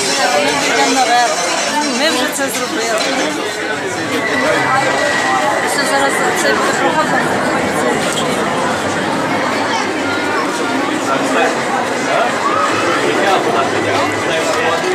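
A crowd of people chatter nearby throughout.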